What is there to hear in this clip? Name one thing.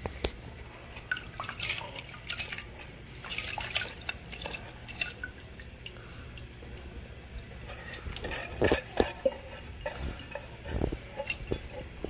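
Dry lentils patter and rattle into a metal pot.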